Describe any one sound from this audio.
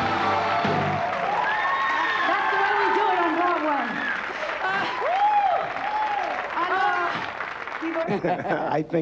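A band plays music.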